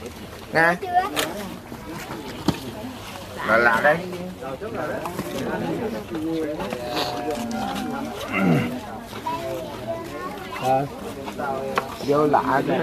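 Several adults chant together in unison nearby, outdoors.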